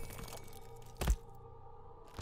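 A blade slices with a sharp impact.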